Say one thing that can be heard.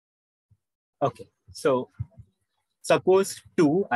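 A young man speaks calmly through a microphone on an online call.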